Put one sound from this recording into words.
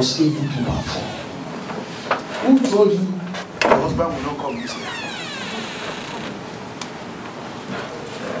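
A man preaches with animation through a microphone in an echoing hall.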